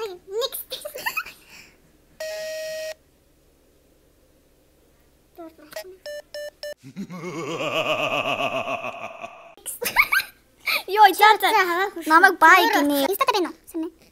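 A second teenage girl laughs softly close by.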